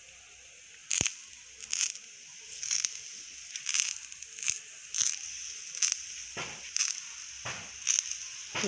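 Hands pat soft dough onto a hot griddle.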